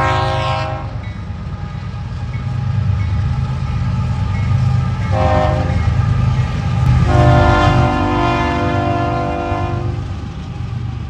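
A train horn blasts loudly several times.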